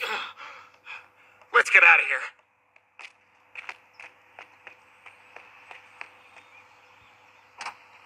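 Footsteps run quickly on a hard path.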